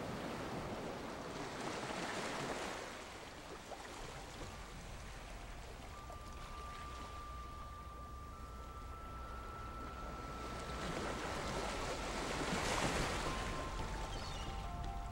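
Small waves wash onto a shore and fizz as they break, swelling and easing.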